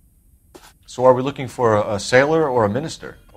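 A man asks a question with animation.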